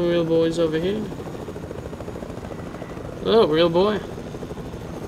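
A young boy talks with animation into a close microphone.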